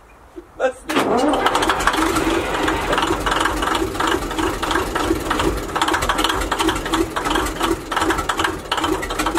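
A straight-eight diesel engine of a small shunting locomotive runs.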